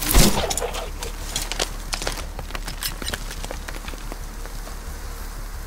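Metal parts of a pistol click and clack as it is handled.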